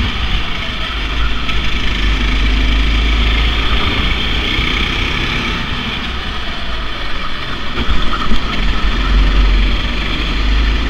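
Other go-kart engines whine nearby.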